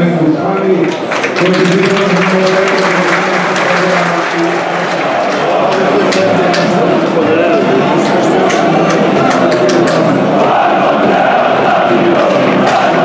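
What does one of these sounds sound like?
A crowd roars and cheers loudly.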